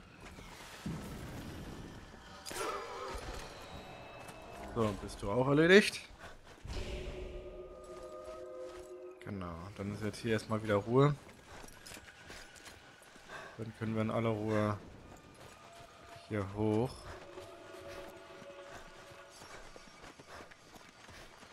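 Footsteps crunch on dry, sandy ground.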